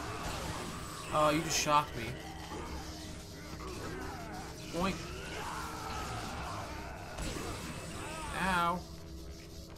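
Bursts of fire whoosh and crackle.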